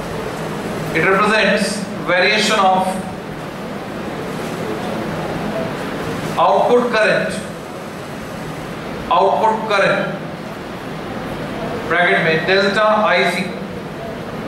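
A man speaks clearly in short phrases, close to a microphone.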